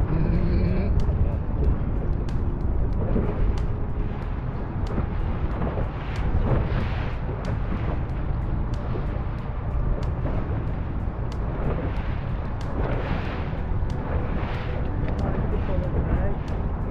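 Wind rushes past in a low, steady roar.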